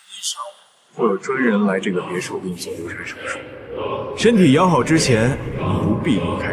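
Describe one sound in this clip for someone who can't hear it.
A young man speaks calmly and coldly, close by.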